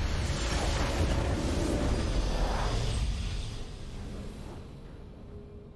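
A victory fanfare plays in a computer game.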